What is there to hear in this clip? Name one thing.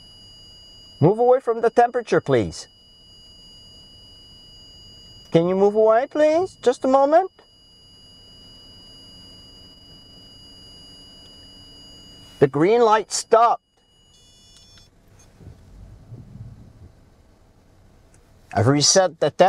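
A man speaks calmly close by in bursts, with long pauses.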